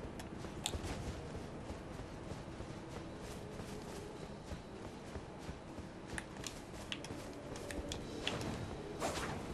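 Quick footsteps patter across stone.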